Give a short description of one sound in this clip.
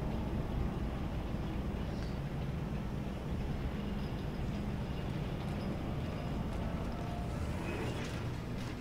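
A low mechanical drone hums steadily.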